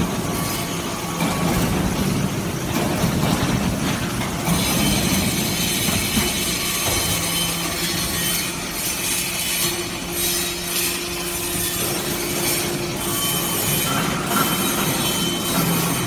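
A hydraulic press hums and whines steadily in a large, echoing hall.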